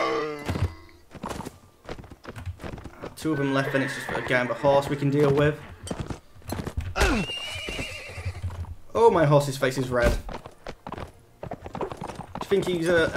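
Horse hooves thud rapidly on grass.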